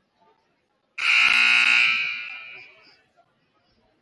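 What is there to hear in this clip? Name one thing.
A referee blows a whistle loudly.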